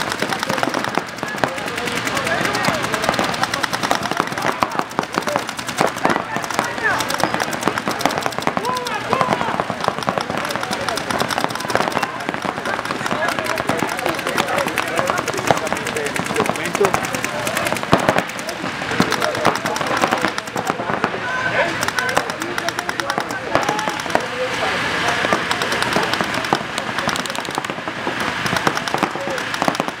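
Paintball guns fire rapid bursts of popping shots.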